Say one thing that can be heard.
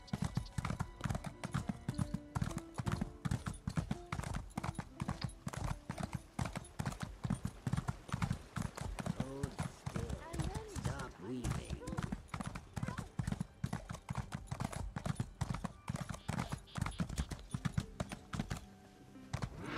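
A horse's hooves gallop rapidly over hard ground.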